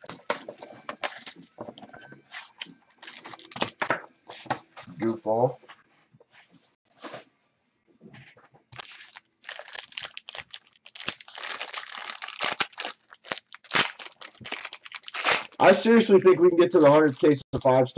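A foil wrapper crinkles and rustles in hands.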